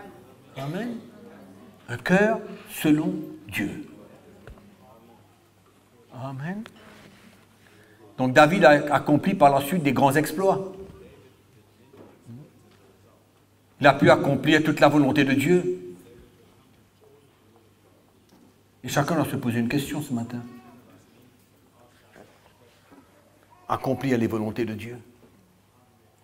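An older man speaks with emphasis into a microphone, in bursts with pauses, in a room with some echo.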